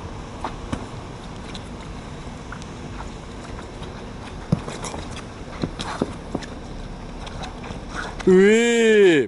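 A futsal ball thuds off players' feet.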